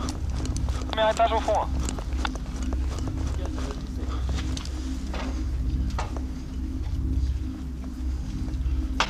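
Footsteps crunch on gravel and rubble.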